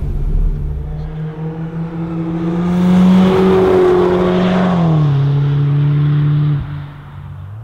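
A car engine roars loudly as the car speeds past close by.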